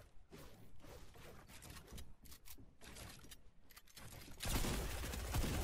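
Footsteps thud on wooden floors.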